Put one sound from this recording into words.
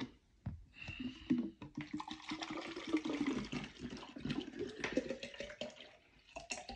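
Water pours into a bottle, rising in pitch as the bottle fills.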